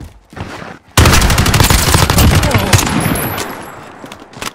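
A rifle fires rapid, loud bursts of gunshots.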